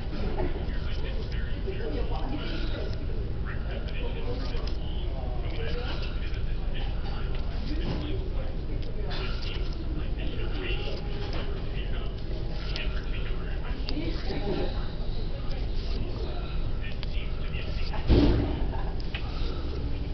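Book pages rustle and flap as they are turned one after another.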